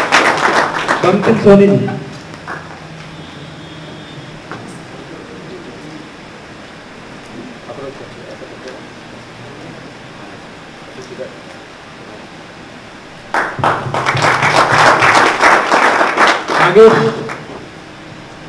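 A group of people applauds loudly.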